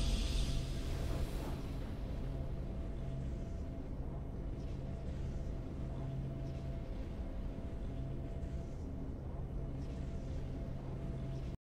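A triumphant music fanfare plays steadily.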